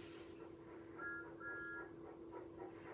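A cartoon train whistle toots twice from a television speaker.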